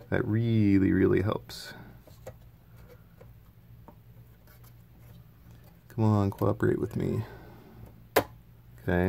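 Circuit boards click and rattle softly as hands handle them.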